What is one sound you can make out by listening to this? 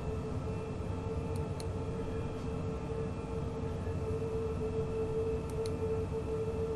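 Train wheels rumble and clatter on the rails.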